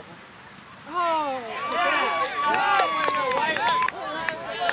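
A crowd of young people cheers and shouts loudly.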